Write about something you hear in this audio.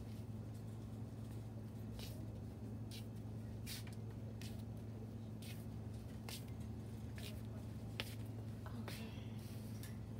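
Flip-flops slap on a hard floor.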